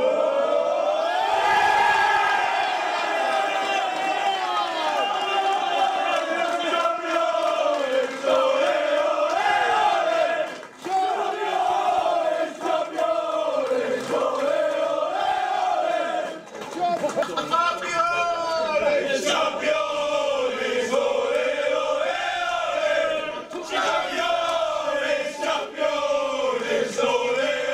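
A group of young men sing and chant loudly together close by.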